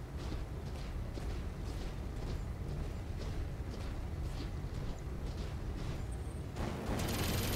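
Heavy metal footsteps clank at a steady pace.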